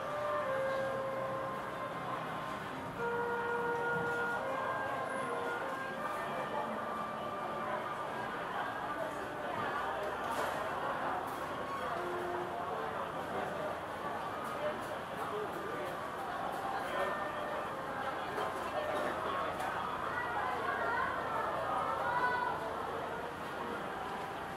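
A crowd of men and women chatters all around, echoing under a high roof.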